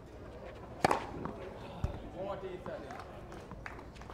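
A tennis ball bounces on a clay court.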